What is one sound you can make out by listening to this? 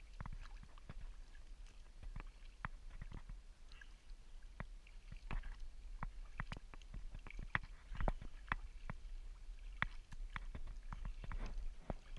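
Water laps against a kayak's hull.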